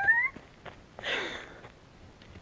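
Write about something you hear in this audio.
A young woman laughs briefly close by.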